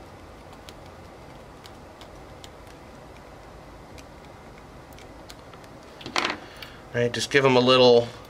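Small plastic connectors click softly as wires are handled.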